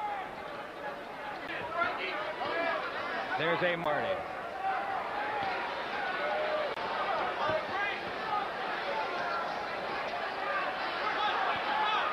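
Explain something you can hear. Gloved punches thud against bodies.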